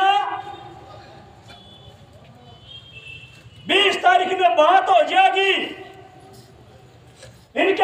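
A middle-aged man speaks loudly through a microphone and loudspeaker, with pauses between phrases.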